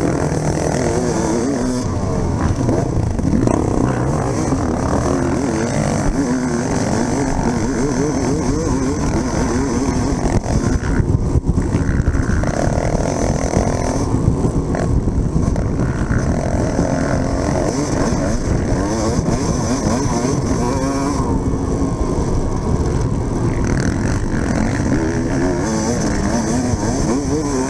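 Several other dirt bike engines buzz nearby.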